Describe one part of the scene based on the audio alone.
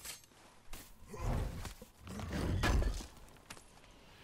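A heavy chest lid creaks open and thumps.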